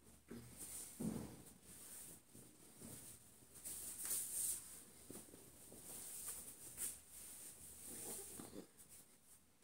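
Fabric rustles as a shirt is handled and pulled on.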